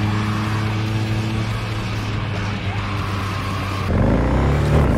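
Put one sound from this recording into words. A car engine roars.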